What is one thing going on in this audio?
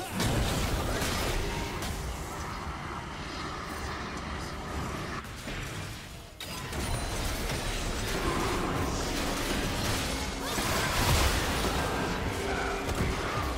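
Magic spells whoosh and crackle in a game fight.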